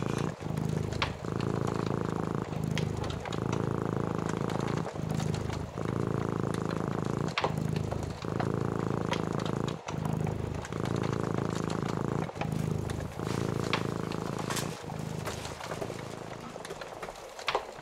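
A cat purrs up close in a slow, steady rhythm.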